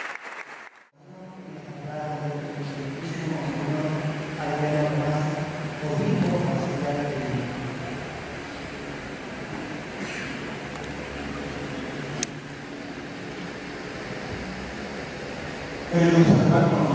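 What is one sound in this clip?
A man speaks slowly into a microphone over loudspeakers in an echoing hall.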